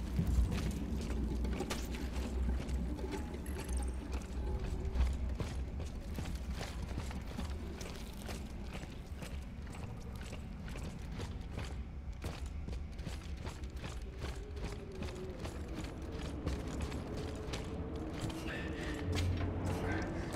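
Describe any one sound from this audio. Heavy footsteps thud and clank on a hard floor.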